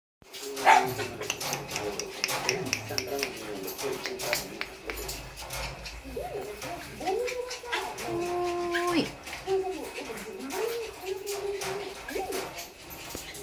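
A puppy whines and whimpers in high, wavering cries.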